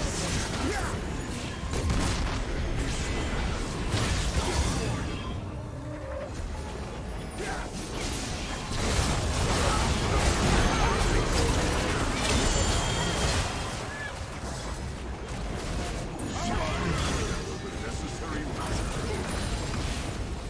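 Game spell blasts and battle effects crackle and whoosh in quick bursts.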